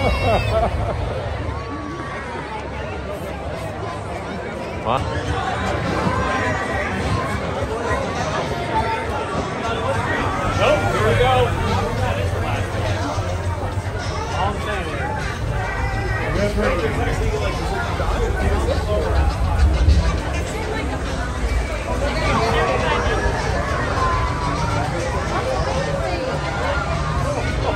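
A large outdoor crowd chatters and calls out all around.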